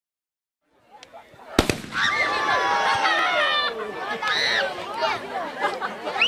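A crowd of children cheers and shouts excitedly outdoors.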